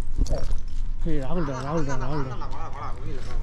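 A dog whines in a high, wavering voice.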